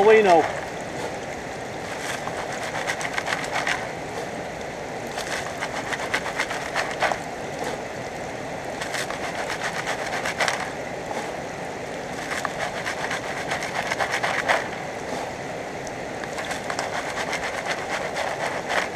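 Gravel rattles and scrapes in a shaken sieve.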